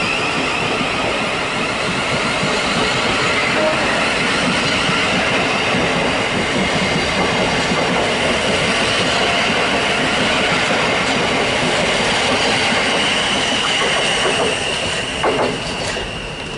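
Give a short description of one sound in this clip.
A train rushes past close by with a loud steady rumble and rattle.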